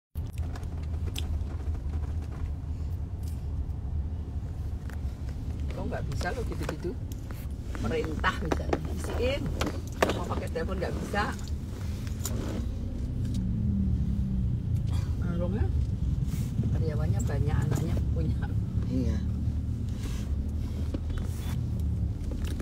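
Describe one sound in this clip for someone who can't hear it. A middle-aged woman talks close by.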